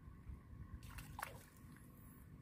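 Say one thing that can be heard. A fish splashes at the surface of calm water.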